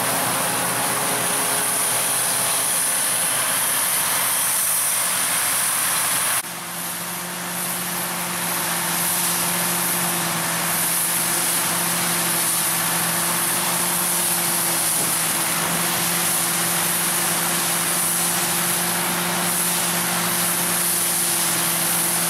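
A harvesting machine rattles and whirs as it cuts grain.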